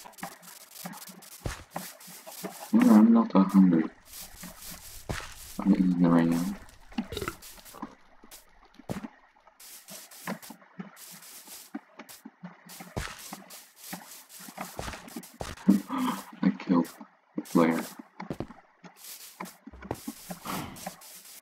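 Footsteps patter quickly over grass and gravel.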